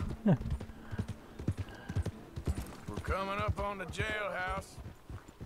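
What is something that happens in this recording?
A horse's hooves clop steadily on a dirt street.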